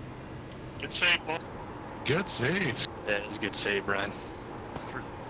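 A man speaks with animation through a close microphone.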